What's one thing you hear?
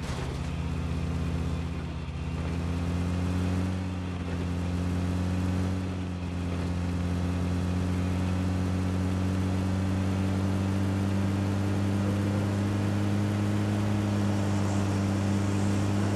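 A vehicle engine drones steadily while driving.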